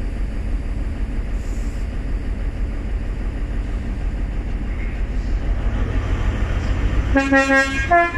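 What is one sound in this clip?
A train engine rumbles low and steadily as the train rolls slowly alongside.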